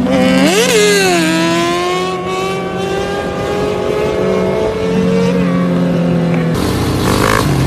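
A motorcycle engine revs loudly, then drones as the bike speeds away.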